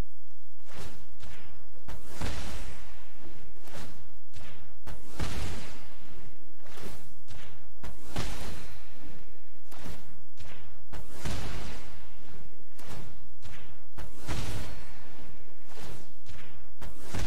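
Magical whooshing effects sound as spells are cast.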